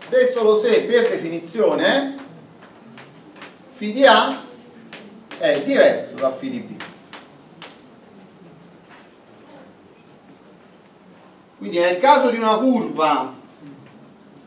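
A man lectures in a loud, clear voice.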